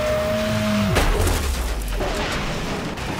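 A car smashes into something with a loud crunching crash.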